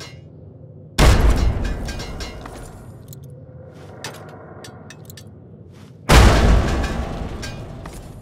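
A heavy gun fires loud booming shots that echo and fade.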